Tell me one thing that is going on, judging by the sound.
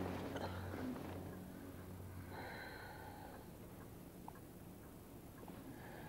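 A woman breathes softly in her sleep.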